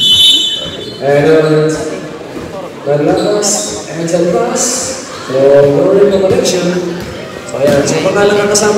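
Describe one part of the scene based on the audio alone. A crowd of young men and women chatters and cheers loudly nearby.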